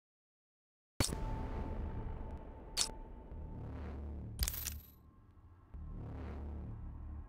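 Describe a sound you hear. Low, rumbling game music plays.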